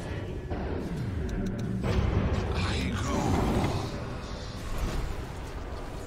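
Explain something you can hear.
Game spell effects zap and crackle during a fight.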